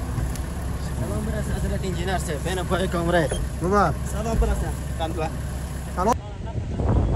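Young men talk and laugh close by.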